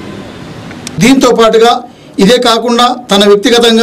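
An elderly man speaks loudly and firmly, close to a microphone.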